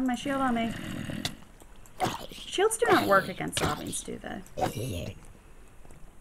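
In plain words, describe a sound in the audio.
A zombie groans and grunts in pain.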